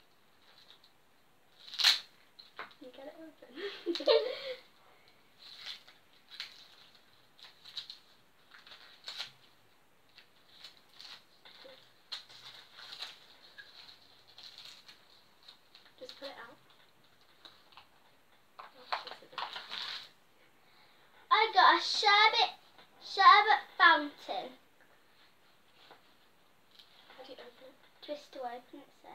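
Paper wrappers rustle and crinkle as they are torn open.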